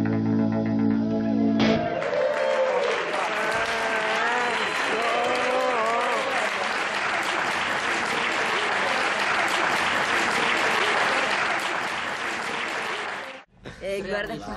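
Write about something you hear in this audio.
A rock band plays loudly on stage.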